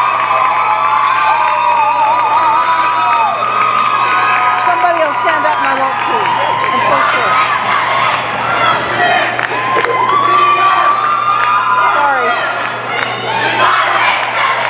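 People in the crowd clap their hands.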